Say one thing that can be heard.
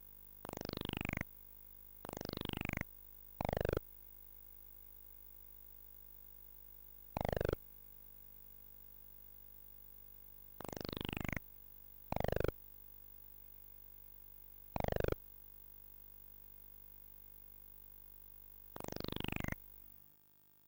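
Short electronic game beeps sweep quickly downward in pitch, again and again.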